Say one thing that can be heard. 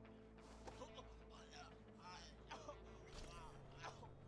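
A man gasps and struggles while being choked.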